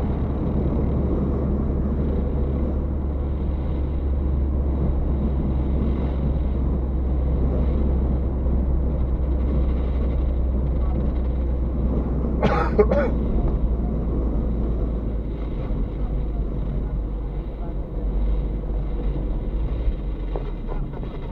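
A car drives along an asphalt road, with engine and tyre noise heard from inside the cabin.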